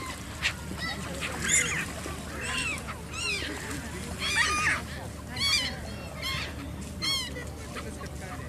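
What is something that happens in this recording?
Gulls call with sharp, repeated cries.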